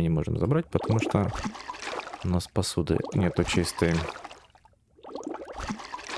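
Water splashes and bubbles in a basin.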